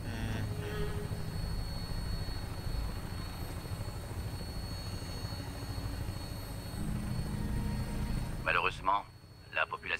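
A helicopter's rotor and engine drone with a low, steady rumble.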